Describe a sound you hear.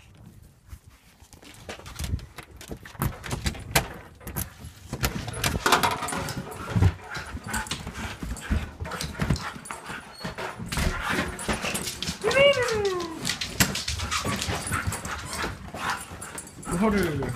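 Dogs scuffle and thump about as they play-fight.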